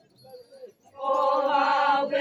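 A group of women sing together loudly in unison outdoors.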